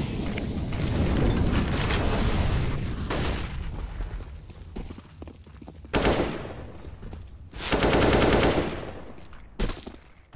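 Footsteps run across hard ground.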